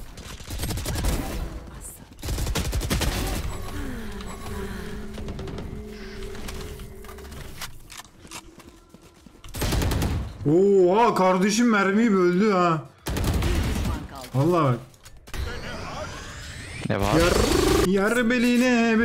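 Video game gunshots fire in quick bursts.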